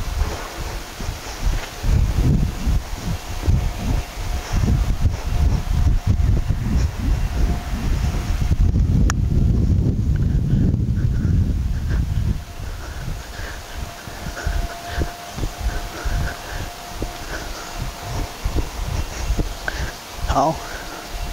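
A horse's hooves thud softly on sand as it trots.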